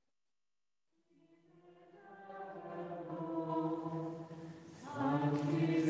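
A man chants in a sustained sung voice that grows louder.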